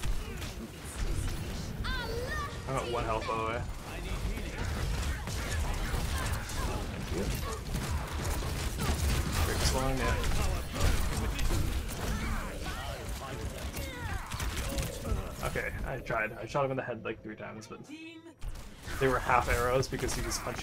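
Explosions and gunfire crackle and boom.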